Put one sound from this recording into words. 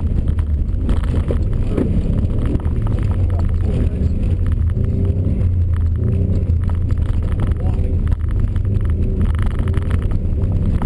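A turbocharged flat-four rally car engine roars under hard throttle, heard from inside the cabin.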